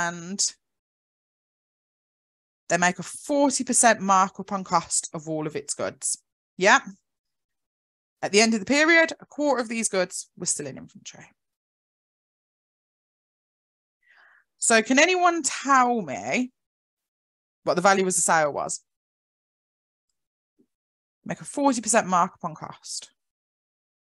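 A woman speaks calmly and clearly into a close microphone, explaining in pauses.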